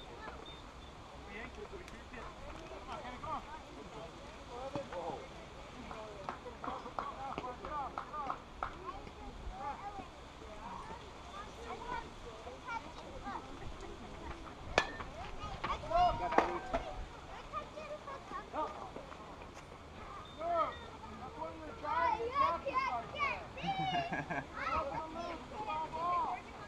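Children and adults shout and cheer outdoors, from a distance.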